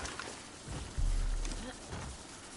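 A body hits the ground hard with a heavy thud.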